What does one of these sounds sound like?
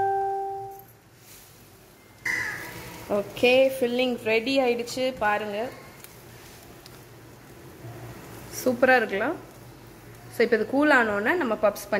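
A wooden spatula scrapes and stirs food in a metal pan.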